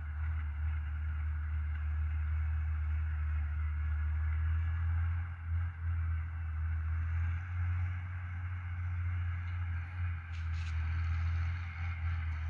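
Tyres roll over a road with a steady rushing noise.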